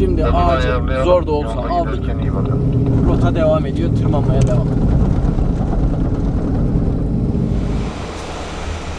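A car engine hums steadily from inside the vehicle.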